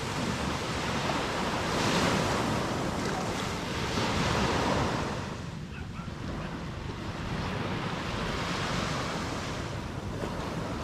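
Wind blows steadily outdoors.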